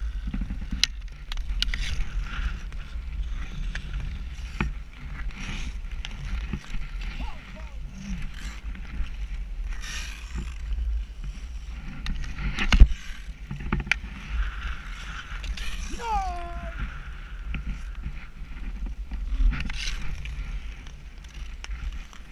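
Ice skate blades scrape and glide over lake ice.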